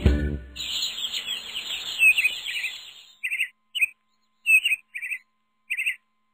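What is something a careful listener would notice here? Small birds chirp and twitter in quick bursts.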